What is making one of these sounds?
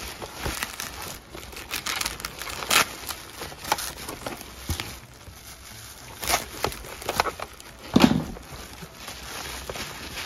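Bubble wrap crinkles and rustles as hands pull it apart.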